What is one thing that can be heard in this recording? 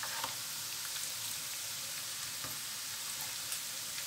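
Liquid pours from a ladle into a pot.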